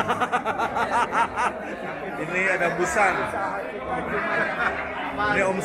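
Many people chatter in the background of a busy room.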